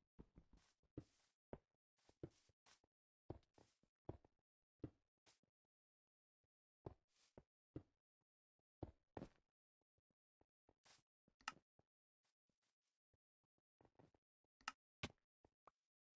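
Soft footsteps tread on grass and stone.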